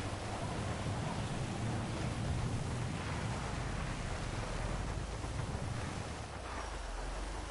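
A van engine rumbles steadily as the van drives.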